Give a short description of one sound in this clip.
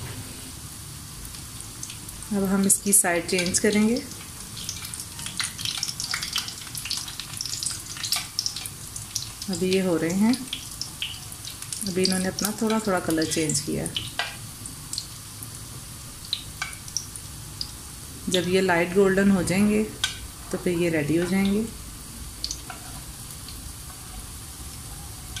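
Patties sizzle softly in hot oil.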